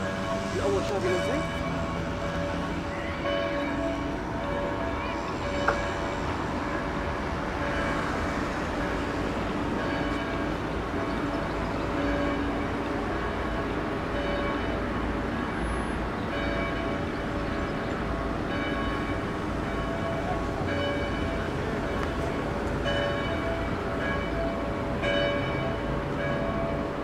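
Traffic rumbles steadily along a street outdoors.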